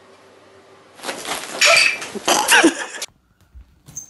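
A cat hisses and yowls.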